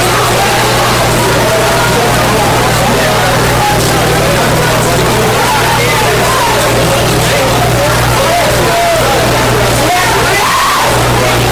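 A rock band plays loudly and distorted.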